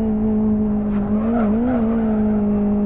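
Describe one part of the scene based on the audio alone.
Tyres squeal briefly through a corner.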